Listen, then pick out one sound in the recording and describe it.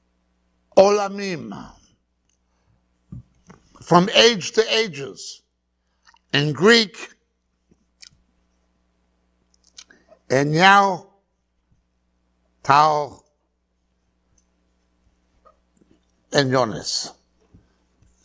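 A middle-aged man speaks loudly and clearly in short phrases, with pauses between them.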